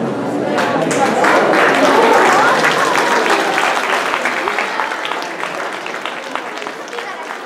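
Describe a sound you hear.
A crowd of children chatters and murmurs in a large echoing hall.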